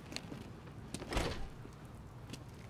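A heavy metal door rattles as someone tries to open it.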